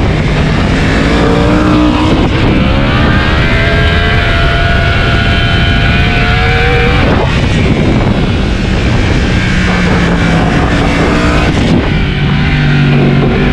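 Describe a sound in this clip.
A motorcycle engine roars loudly, its pitch rising through the gears and dropping as it slows.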